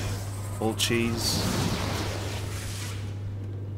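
A crackling burst of electric energy surges and fades.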